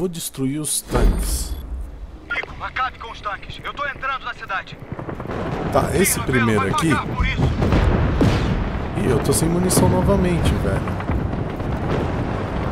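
Gunfire and explosions boom and crackle.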